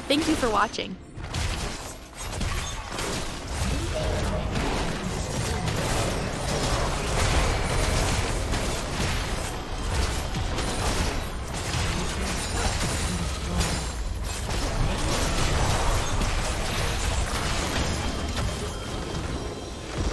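Game spells and weapon impacts clash and crackle in a busy battle.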